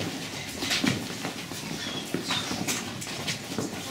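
Women and children chatter quietly nearby in an echoing room.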